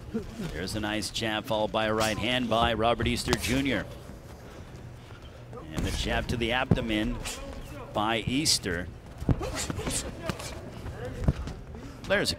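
Boxing gloves thud against a body in sharp blows.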